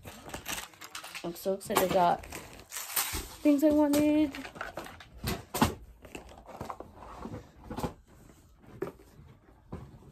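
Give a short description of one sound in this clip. Paper or plastic rustles and crinkles close by.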